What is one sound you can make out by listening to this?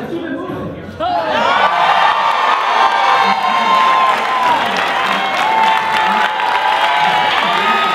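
A large crowd screams and cheers loudly in an echoing hall.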